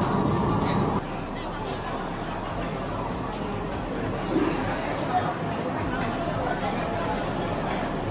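A crowd chatters in a large, busy open hall.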